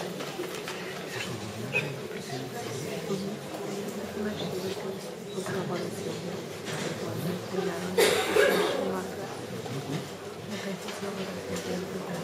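A man speaks calmly through a microphone in a room with some echo.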